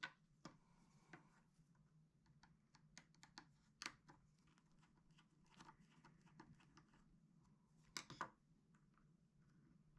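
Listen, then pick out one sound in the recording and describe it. A small screwdriver clicks and scrapes against plastic.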